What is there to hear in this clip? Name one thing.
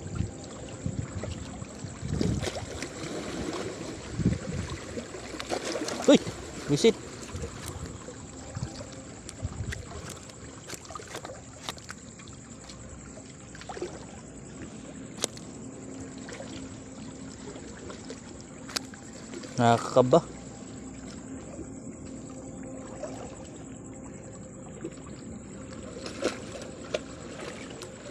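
Hands shuffle and tap a wet fish against a hard floor.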